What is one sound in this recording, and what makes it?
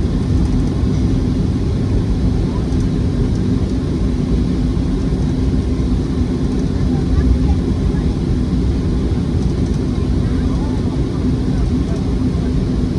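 Jet engines roar steadily from inside an airliner cabin.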